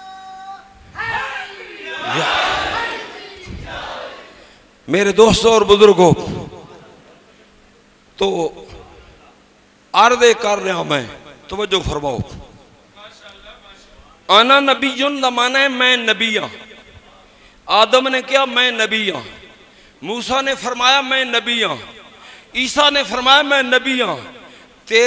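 A man chants loudly through a microphone and loudspeaker, in long drawn-out phrases with pauses between them.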